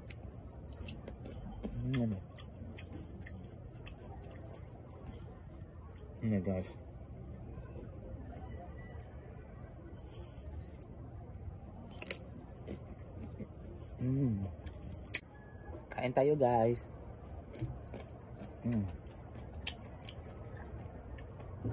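A young man crunches on crisp fruit while chewing.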